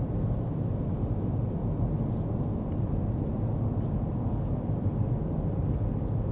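A car engine hums and road noise rumbles steadily from inside a moving car.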